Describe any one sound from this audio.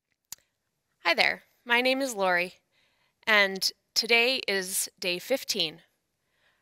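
A young woman speaks calmly and warmly into a microphone nearby.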